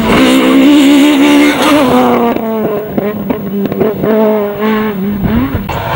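Gravel crunches and sprays under spinning tyres.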